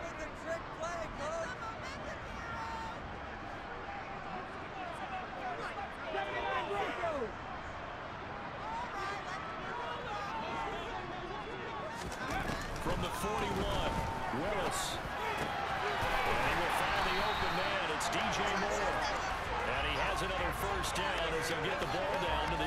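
A large stadium crowd roars and cheers, growing louder partway through.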